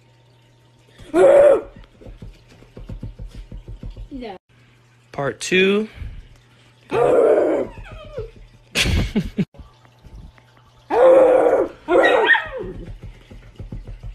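A dog growls and yaps playfully close by.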